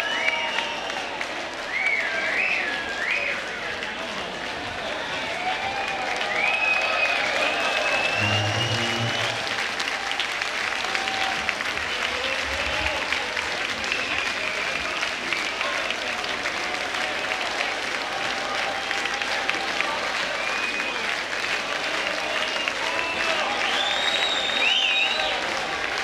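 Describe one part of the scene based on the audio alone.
People in a crowd whistle loudly with rising and falling whistles.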